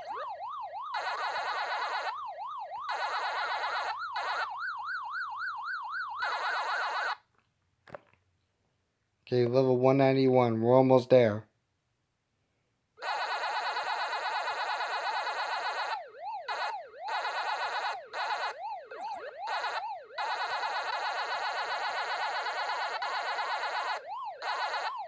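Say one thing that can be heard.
Electronic game sounds warble and chirp in a quick, steady rhythm.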